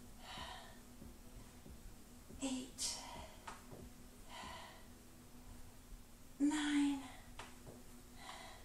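A woman breathes out heavily during floor exercises.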